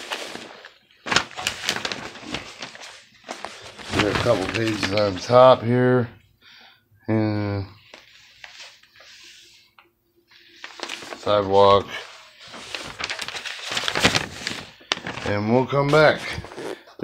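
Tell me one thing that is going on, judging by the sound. Large sheets of paper rustle and crinkle as they are handled.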